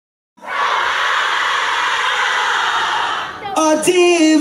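A crowd cheers and screams loudly.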